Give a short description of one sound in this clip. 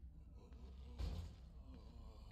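A heavy metal gate clangs as it is pushed.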